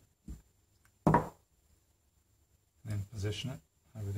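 Pliers clatter as they are set down on a table.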